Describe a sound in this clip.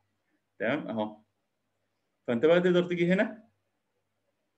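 A man speaks calmly through a microphone in short phrases.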